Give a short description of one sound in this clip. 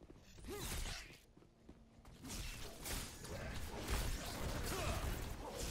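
Blades swing and strike in a close fight.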